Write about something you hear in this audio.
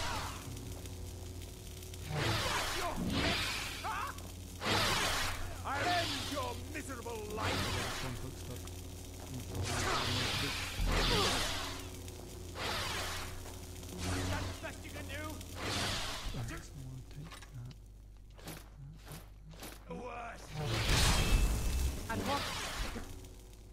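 Electric bolts crackle and buzz.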